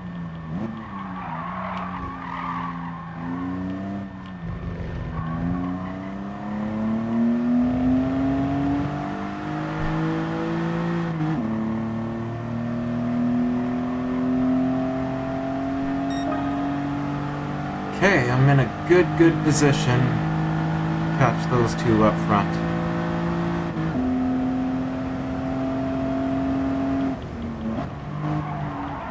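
A racing car engine roars loudly, rising in pitch and dropping at each gear change.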